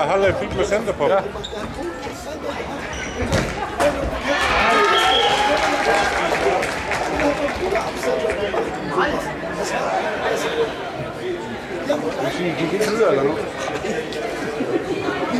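Men call out to one another across a large echoing hall.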